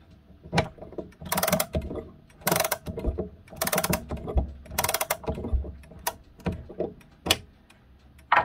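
A winding key turns in a wall clock, its mainspring ratchet clicking in quick bursts.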